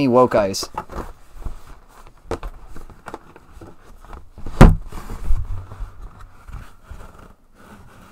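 A cardboard box rustles and thumps as it is handled.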